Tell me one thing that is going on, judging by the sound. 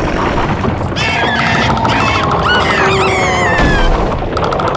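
A small cartoon creature squeals and jabbers in a high, squeaky voice.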